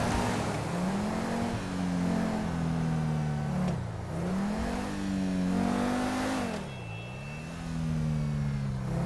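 A car engine revs up and down as it drives along.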